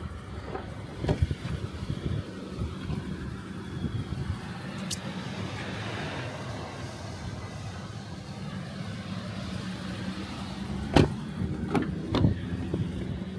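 A car door latch clicks open.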